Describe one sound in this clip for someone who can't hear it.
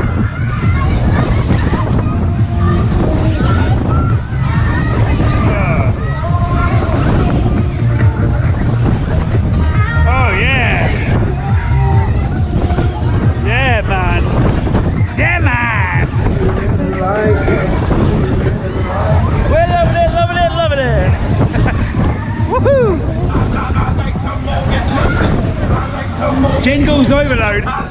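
A fairground ride whirls round with a steady low rumble.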